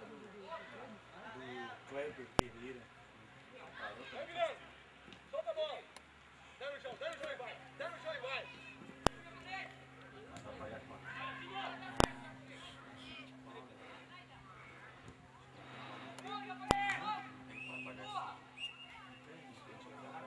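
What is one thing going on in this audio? Young players shout to each other from across an open field.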